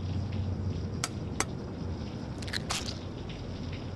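A stove knob clicks as it turns.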